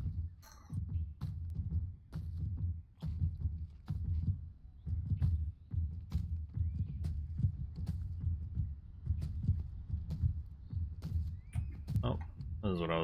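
Footsteps thud steadily on wooden boards.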